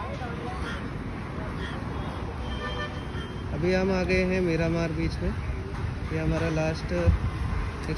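Motor scooters and cars drive past on a nearby road.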